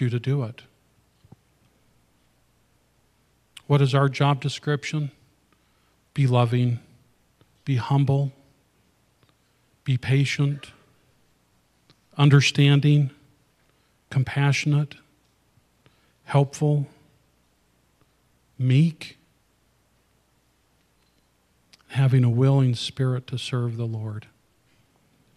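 A middle-aged man speaks calmly through a microphone in short phrases with pauses.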